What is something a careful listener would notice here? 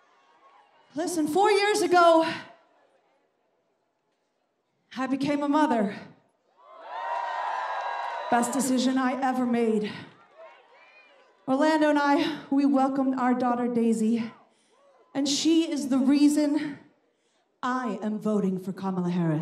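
A woman speaks through loudspeakers with animation, echoing in the open air.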